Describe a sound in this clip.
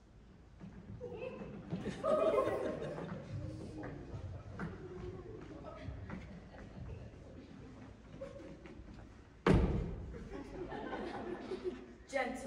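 Several young people speak and call out on a stage in a large echoing hall.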